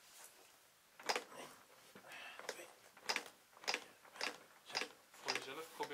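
Hands press rhythmically on a training manikin's chest with soft thumps and clicks.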